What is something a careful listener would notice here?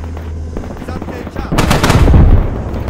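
A gun fires a single shot.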